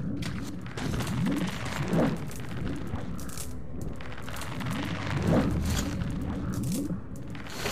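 Rain patters down steadily outdoors.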